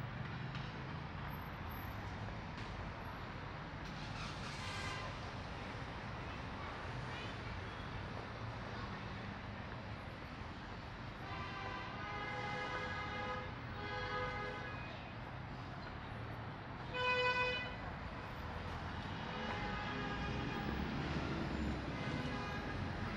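Distant traffic hums steadily outdoors.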